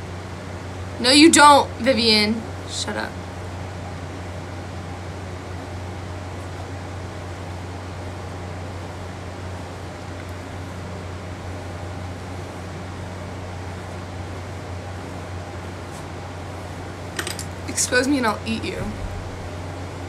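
A young woman speaks close to a phone microphone, casually.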